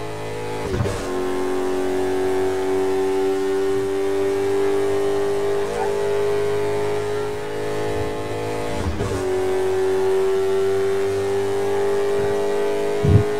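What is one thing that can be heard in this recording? A racing car engine roars steadily at high speed, shifting gears now and then.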